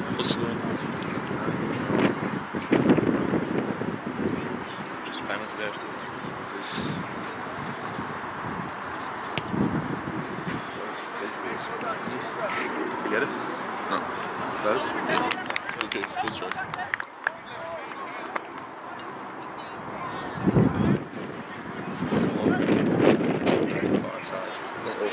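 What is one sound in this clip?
Spectators chatter and call out at a distance outdoors.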